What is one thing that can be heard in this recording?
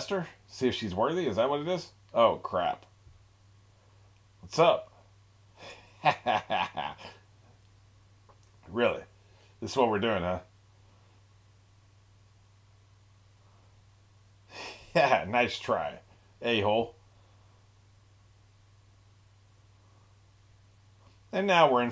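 An older man talks with animation over an online call, in short bursts with pauses.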